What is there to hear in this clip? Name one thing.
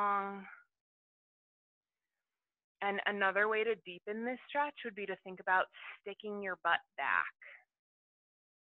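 A woman speaks calmly and clearly through a headset microphone.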